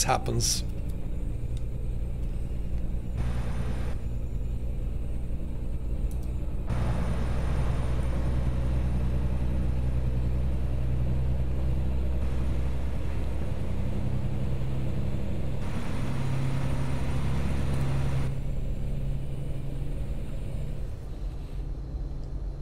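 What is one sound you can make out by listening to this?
A truck engine drones steadily, growing louder for a while before settling back.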